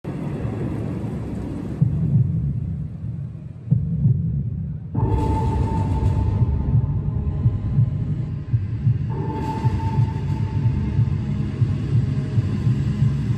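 A large crowd cheers loudly in an echoing arena.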